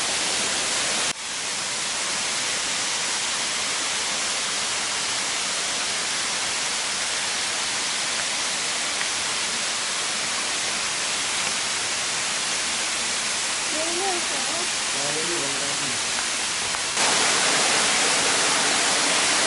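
Wind rustles steadily through the leaves of trees outdoors.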